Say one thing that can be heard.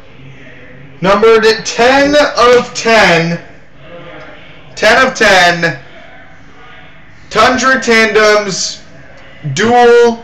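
A young man talks loudly and with excitement close by.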